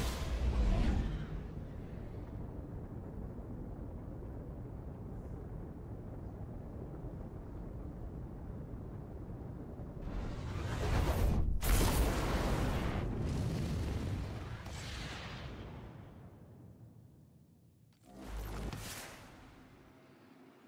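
Loud whooshing blasts swell and fade as a spacecraft jumps.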